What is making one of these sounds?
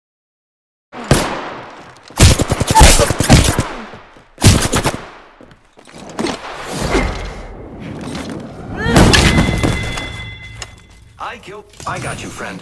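Gunshots crack and echo outdoors.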